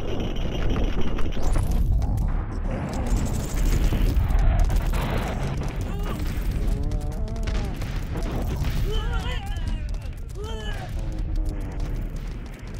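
Explosions boom and rumble one after another.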